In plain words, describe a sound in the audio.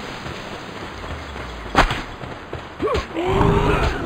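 Fire bursts and crackles during a fight.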